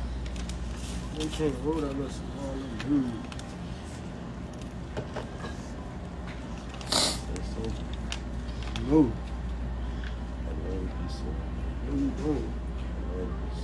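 A young man talks casually, close to a phone microphone.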